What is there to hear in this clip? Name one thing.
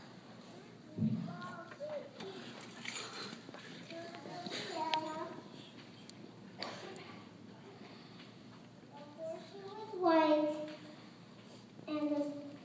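A woman speaks through a microphone in a large echoing hall.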